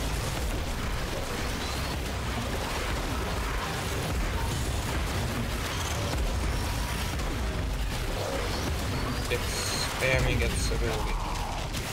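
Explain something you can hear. Magic energy blasts crackle and roar.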